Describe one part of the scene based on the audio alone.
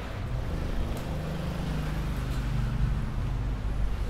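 A motor scooter engine hums nearby and fades away.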